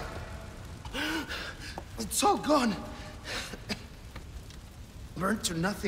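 A man speaks weakly and sadly.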